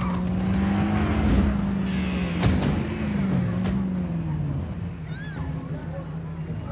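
A car engine hums steadily as the car drives along, then slows down.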